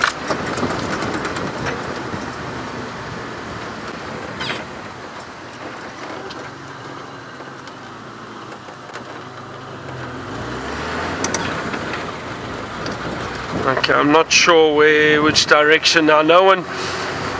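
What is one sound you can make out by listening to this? A vehicle rattles and bumps over a rough dirt track.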